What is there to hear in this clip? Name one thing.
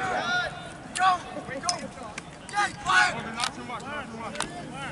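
Lacrosse sticks clack together.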